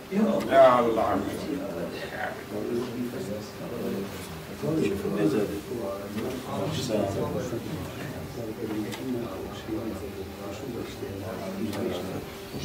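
Many men murmur and talk in the background.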